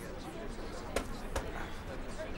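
A ski knocks against the hard ground.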